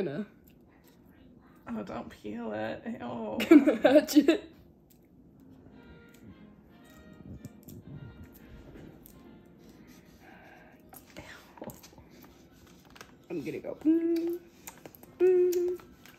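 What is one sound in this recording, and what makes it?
An eggshell crackles as it is peeled.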